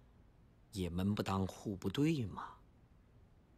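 A middle-aged man speaks calmly and seriously.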